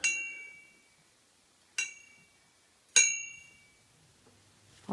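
A lamp switch clicks with a short metallic ring.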